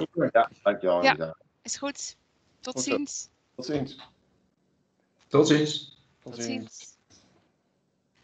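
A woman speaks calmly through a headset microphone on an online call.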